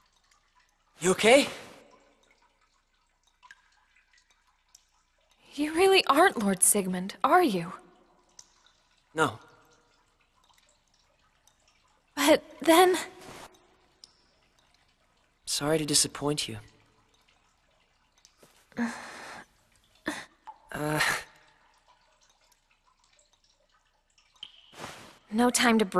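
A young woman speaks softly and sadly.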